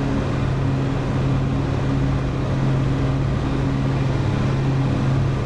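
A jet engine hums with a low, steady drone.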